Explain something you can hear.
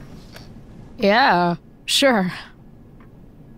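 A woman speaks with an exasperated, drawn-out tone.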